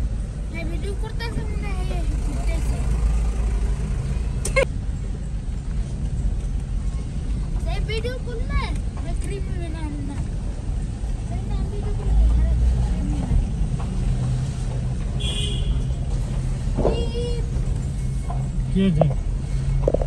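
A car engine rumbles steadily at low speed.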